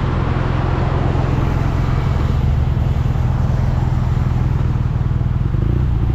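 Wind rushes past, loud and close.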